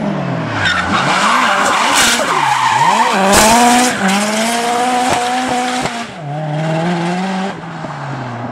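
A rally car engine revs hard and bounces off the limiter close by.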